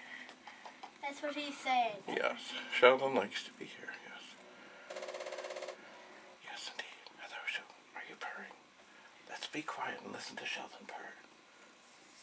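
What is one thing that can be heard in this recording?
A middle-aged man talks warmly and close by.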